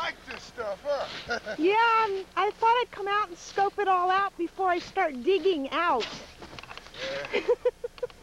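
Snow shovels scrape and scoop through packed snow.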